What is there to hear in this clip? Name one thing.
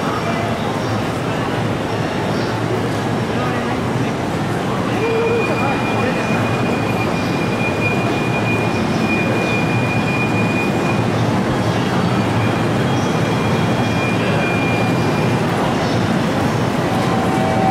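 A busy crowd murmurs and shuffles around in a large echoing hall.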